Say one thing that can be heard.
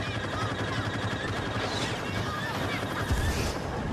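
Laser blasters fire in sharp bursts.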